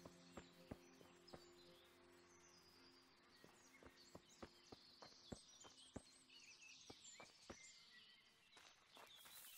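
Footsteps swish and thud through tall grass at a steady walking pace.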